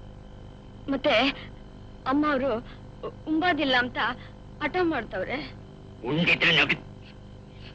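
A woman speaks tearfully and with emotion, close by.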